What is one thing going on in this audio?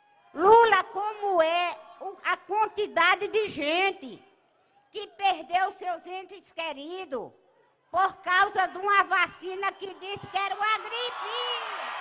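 An elderly woman speaks with animation into a microphone over loudspeakers.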